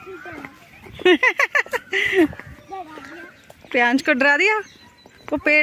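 A small child talks in a high voice, close by.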